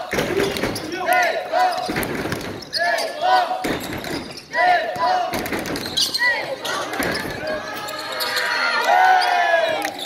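Male players call out to each other in an echoing hall.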